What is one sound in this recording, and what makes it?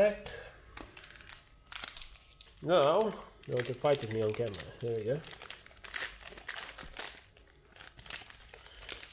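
A foil wrapper crinkles and rustles as it is handled.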